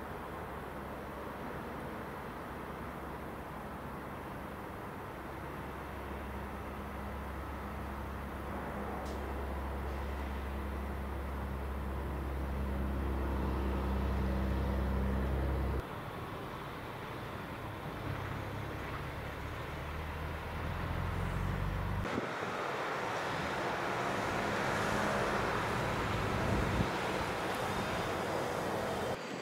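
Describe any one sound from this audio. Cars hiss past on a nearby road.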